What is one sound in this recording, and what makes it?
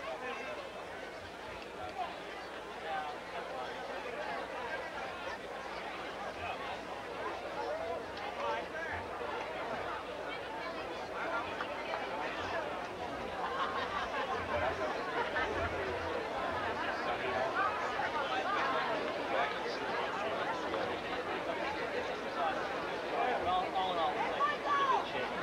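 A crowd of players and onlookers chatters outdoors, growing louder.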